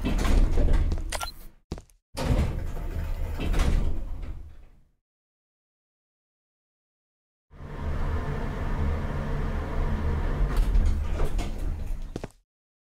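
An elevator hums with a low, steady rumble.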